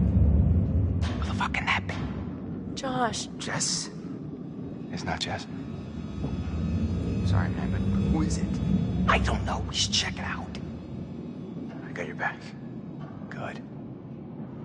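A young man speaks tensely in a quiet voice.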